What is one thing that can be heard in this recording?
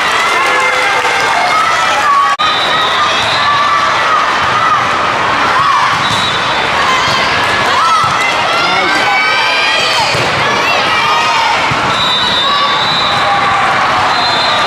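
Many voices chatter and call out across a large echoing hall.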